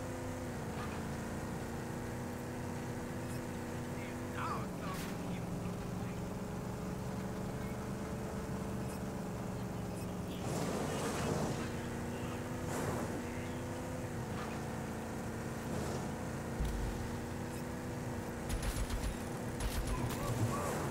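A vehicle engine hums steadily, shifting pitch as it drives.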